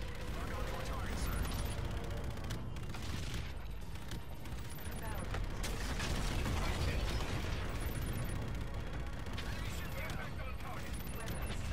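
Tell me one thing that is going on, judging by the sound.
Cannons fire in rapid bursts.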